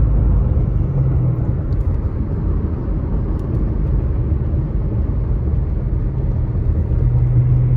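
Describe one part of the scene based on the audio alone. Tyres roll over asphalt with a low rumble.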